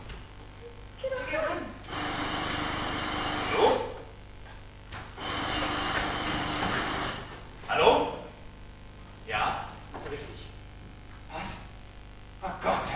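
A man speaks on a stage, heard from a distance in a hall.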